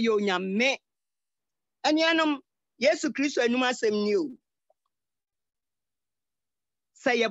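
An elderly woman speaks with feeling in short bursts over an online call.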